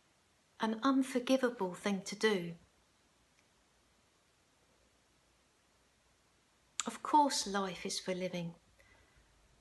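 An elderly woman speaks calmly and close to a microphone, with pauses.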